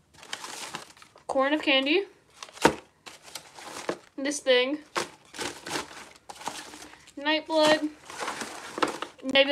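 Paper and plastic wrapping rustle and crinkle.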